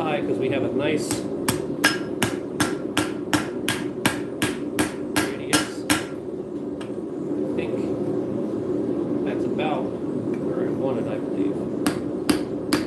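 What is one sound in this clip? A hammer rings sharply as it strikes hot metal on an anvil, in a quick steady rhythm.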